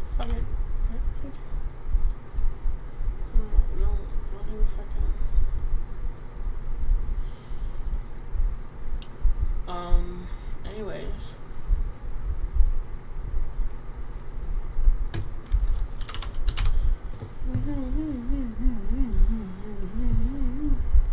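Soft game menu clicks sound now and then.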